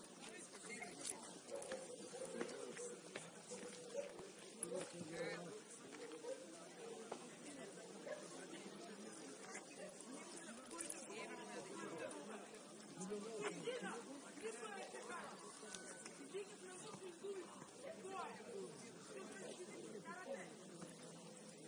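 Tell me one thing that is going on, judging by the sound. Football players shout and call to each other in the distance outdoors.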